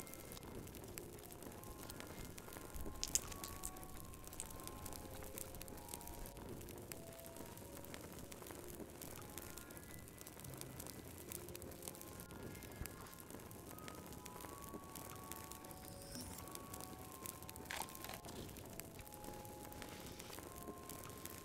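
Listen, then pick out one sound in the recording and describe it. A fire crackles and pops softly.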